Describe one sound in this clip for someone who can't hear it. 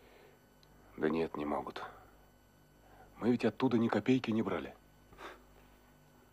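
A man speaks in a low, earnest voice close by.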